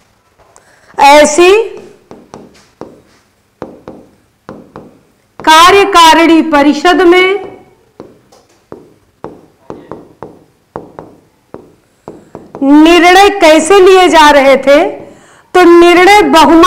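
A young woman speaks clearly into a close microphone, explaining.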